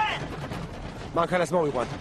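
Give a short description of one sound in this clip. A man yells angrily.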